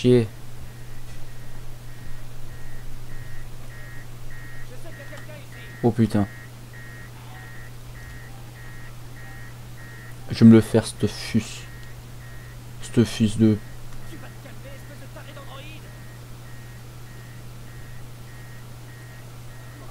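A handheld tracker gives out short, steady, rhythmic beeps.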